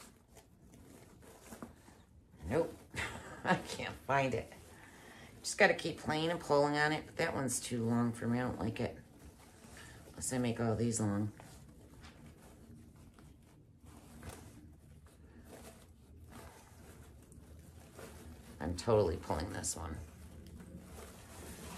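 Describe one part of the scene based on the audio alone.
Ribbon rustles and crinkles as hands shape a bow.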